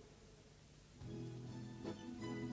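Acoustic guitars strum.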